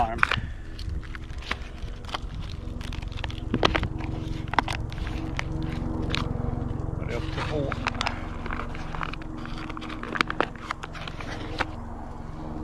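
A foil food pouch crinkles and tears as it is opened.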